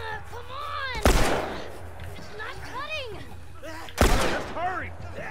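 A pistol fires two loud shots that echo briefly.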